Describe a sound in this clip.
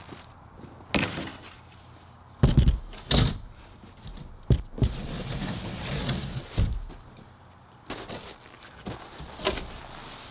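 A large wooden panel scrapes and thumps as it is lifted.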